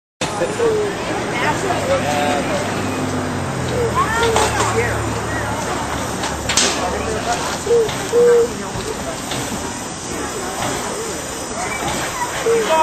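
A steam pump engine chugs and hisses steadily.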